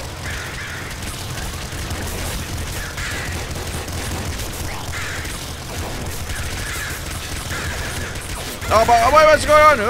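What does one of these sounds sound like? Explosions burst repeatedly in a video game.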